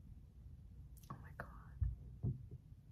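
A young woman gasps in surprise.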